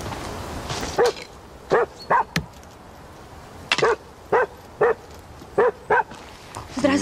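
An axe splits wood with sharp knocks.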